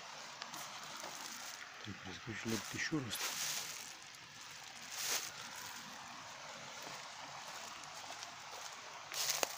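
Dry leaves and twigs rustle underfoot.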